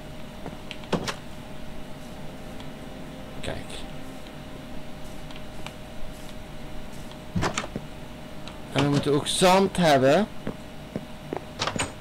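A wooden door creaks open and bangs shut.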